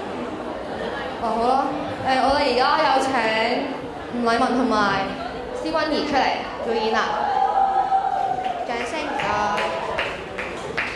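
A second girl answers through a microphone in an echoing hall.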